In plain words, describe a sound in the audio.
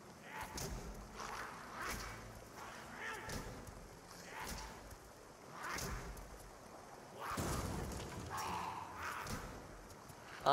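Blows land with short, sharp impacts.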